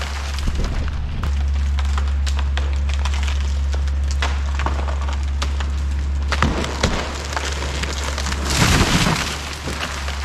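A heavy machine rumbles as it works in the distance.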